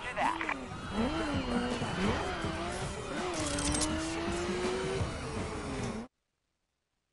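A sports car engine revs and roars as the car speeds along.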